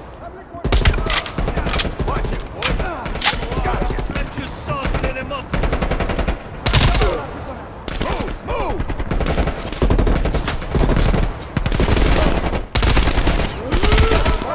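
Guns fire in rapid bursts, loud and close.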